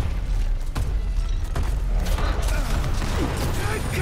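Rifle gunfire rattles in bursts.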